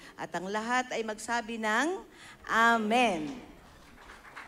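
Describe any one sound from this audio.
A woman sings through a microphone and loudspeakers in a large hall.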